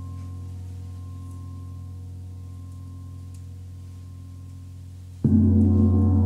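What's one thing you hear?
A large gong hums softly as a mallet rubs it.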